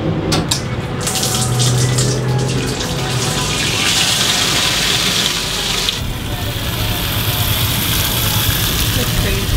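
Fuel gushes from a pump nozzle into a plastic canister.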